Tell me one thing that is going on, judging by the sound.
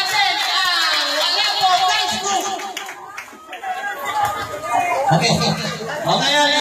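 A large crowd chatters and shouts loudly close by.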